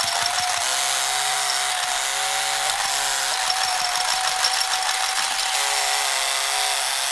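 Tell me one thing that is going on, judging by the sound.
A small toy motor whines steadily at high speed.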